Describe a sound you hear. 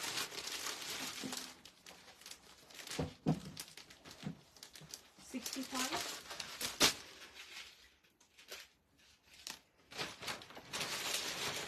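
A woman speaks calmly close by.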